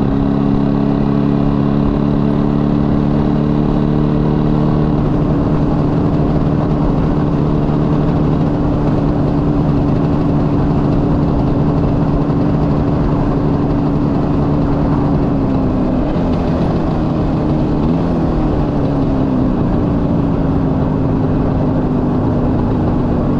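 A motorcycle engine hums steadily up close, its pitch shifting as it slows and picks up again.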